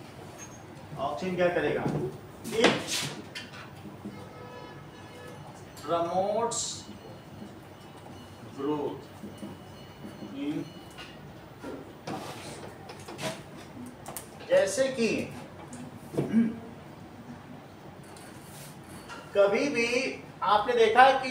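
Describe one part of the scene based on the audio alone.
A middle-aged man speaks calmly, explaining in a small room.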